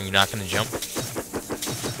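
A creature bursts with a wet splatter when struck.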